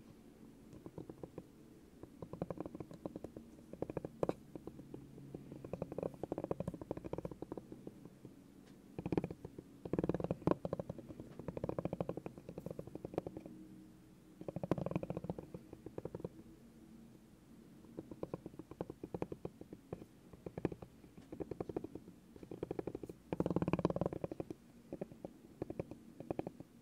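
A spiky rubber ball rolls and rubs across a wooden surface in short scratchy bursts.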